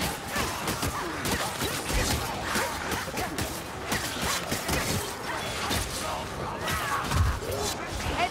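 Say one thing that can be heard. Melee weapons hack and slash into enemies with wet thuds.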